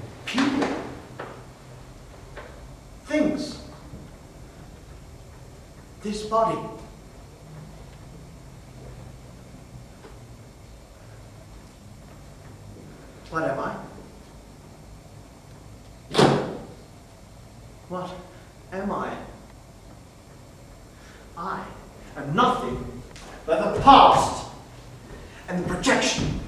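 A man speaks loudly and dramatically in short bursts with pauses, in a room with some echo.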